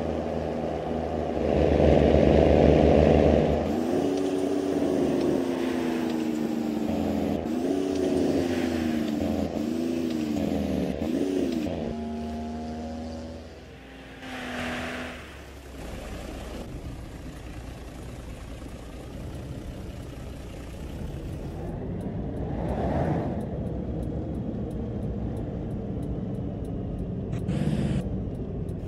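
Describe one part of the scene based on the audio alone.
Tyres roll along a road with a steady rumble.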